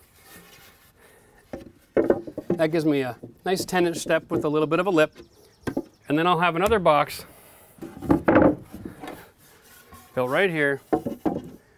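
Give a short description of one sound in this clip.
Wooden boards knock against each other.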